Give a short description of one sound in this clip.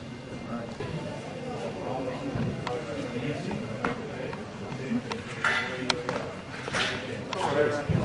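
Men talk casually nearby in a large echoing hall.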